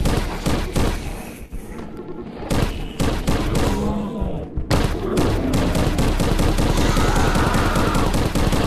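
Laser guns fire in rapid bursts.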